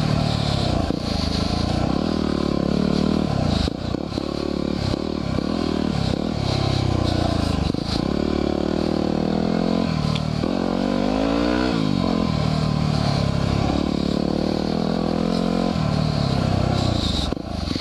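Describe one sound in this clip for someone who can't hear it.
A dirt bike engine roars up close, revving up and down as gears change.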